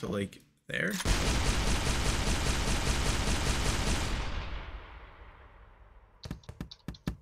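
A loud explosion booms and rumbles, then slowly fades.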